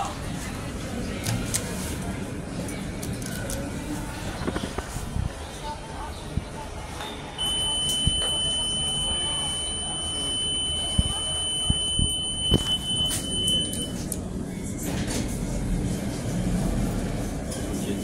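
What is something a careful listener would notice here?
A finger presses a lift button with a soft click.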